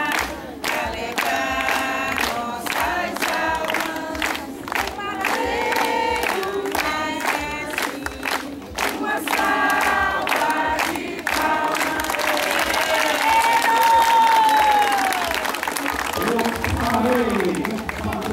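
A crowd sings together loudly.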